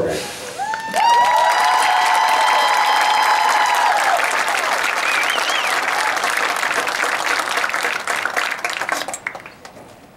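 Drums and cymbals beat rapidly.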